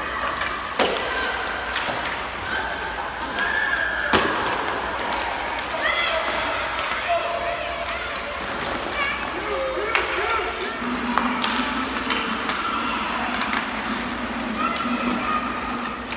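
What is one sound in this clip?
Hockey sticks clack against a puck on the ice.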